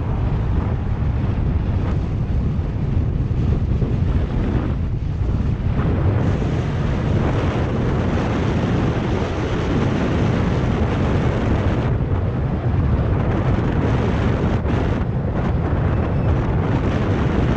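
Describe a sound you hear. Bicycle tyres hum on smooth asphalt.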